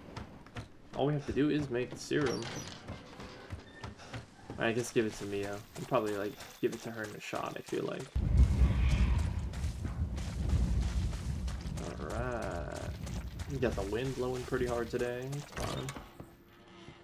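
A young man talks with animation into a microphone.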